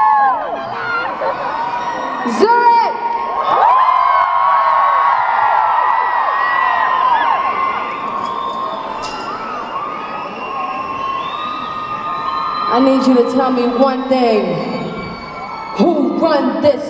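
A large crowd screams and cheers close by.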